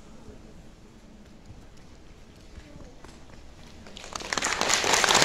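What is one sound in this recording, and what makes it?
A mixed choir sings together in a large echoing hall.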